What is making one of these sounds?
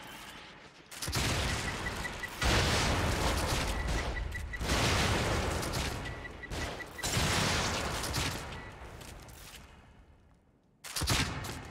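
A heavy gun fires loud booming blasts that slowly fade away.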